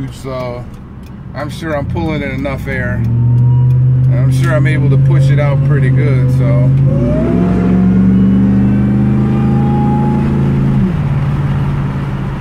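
A car engine drones and climbs in pitch as it speeds up, dropping at each gear change.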